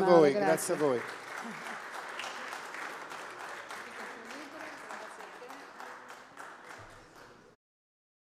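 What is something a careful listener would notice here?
An audience applauds steadily and slowly fades.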